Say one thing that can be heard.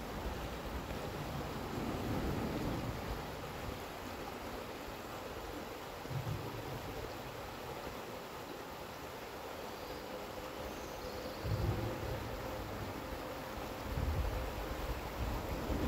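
Wind gusts blow outdoors over the water.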